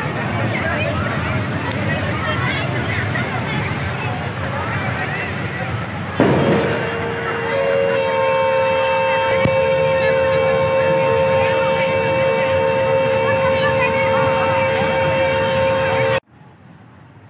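An amusement ride rattles along its track.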